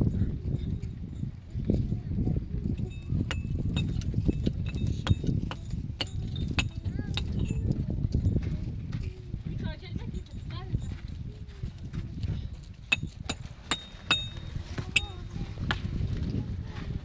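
A small hammer taps and chips at hard rock.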